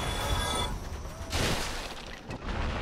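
Large wings beat loudly as a dragon swoops overhead.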